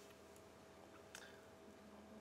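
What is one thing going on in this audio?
A stone clicks down onto a wooden game board.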